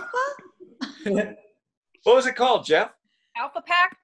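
People laugh over an online call.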